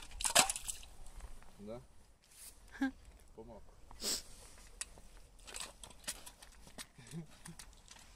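An ice auger scrapes and crunches into ice.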